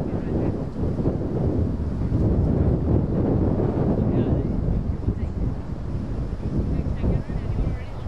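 Wind rumbles steadily across an open field outdoors.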